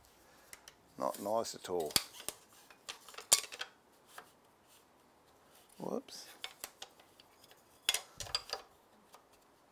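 A wooden piece knocks and scrapes against a saw's fence.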